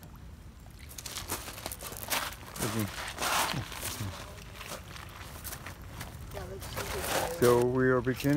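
Water laps gently against a rocky shore.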